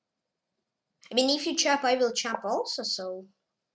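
A young boy speaks close to a microphone.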